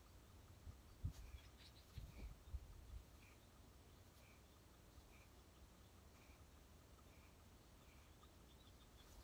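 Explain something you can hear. A fishing reel clicks softly as it is wound.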